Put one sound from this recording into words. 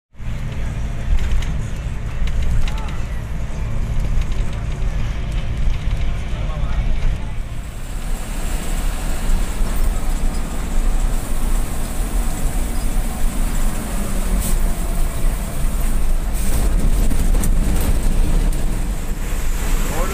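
A vehicle engine rumbles steadily from inside a moving bus.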